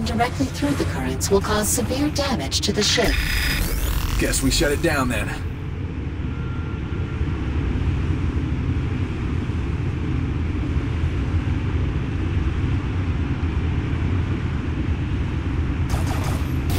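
Swirling energy currents roar and rush.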